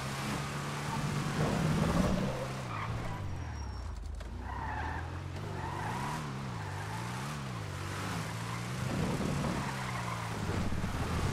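A race car engine roars steadily, its pitch rising and falling.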